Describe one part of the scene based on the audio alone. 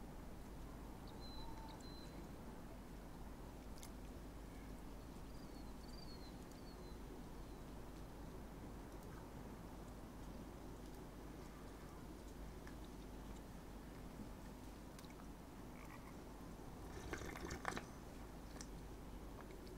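Wind blows softly and steadily outdoors.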